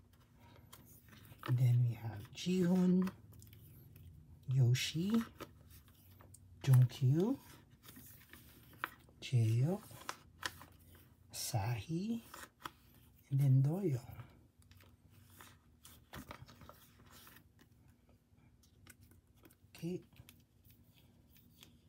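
Plastic card sleeves rustle and crinkle close by.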